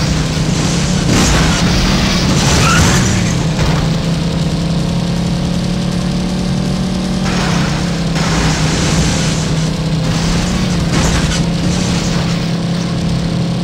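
Tyres skid and scrape over rough ground in bursts.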